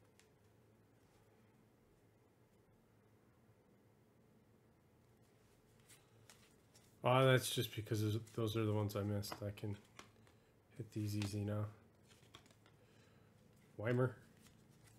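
Trading cards rustle and click softly as fingers shuffle through a stack.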